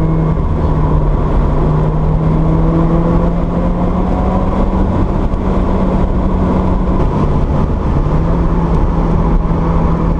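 Tyres roll on a paved road with a steady rumble.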